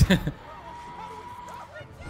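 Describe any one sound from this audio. A large bird screeches.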